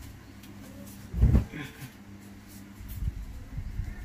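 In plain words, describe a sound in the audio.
A heavy blanket lands on a bed with a soft thump.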